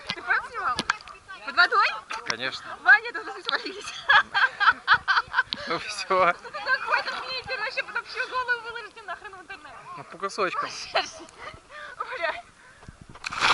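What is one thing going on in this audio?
Young people shout and laugh nearby outdoors.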